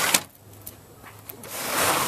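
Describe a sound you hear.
A key clicks in a cabinet lock.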